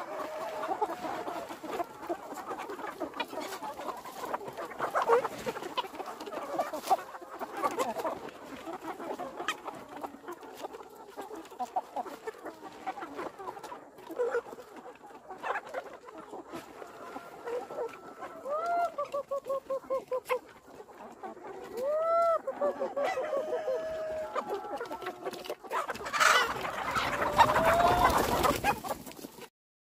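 A large flock of chickens clucks and squawks outdoors.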